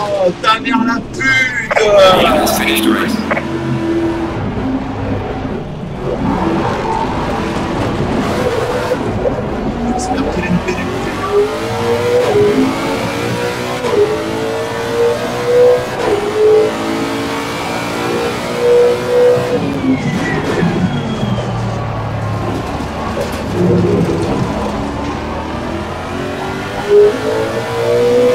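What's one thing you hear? A race car engine roars, rising and falling in pitch as it shifts gears.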